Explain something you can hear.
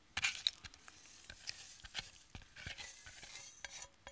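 Melted butter pours and splats into dry oats.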